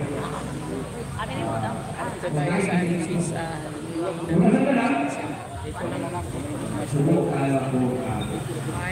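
A middle-aged woman talks steadily and close up.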